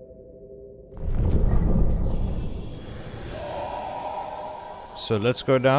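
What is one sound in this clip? A submarine docks with a loud watery rumble that slowly fades.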